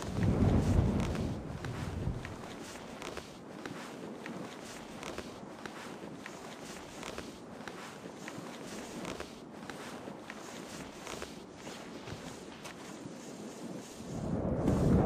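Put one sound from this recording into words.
Hands scrape and tap on a stone wall during a climb.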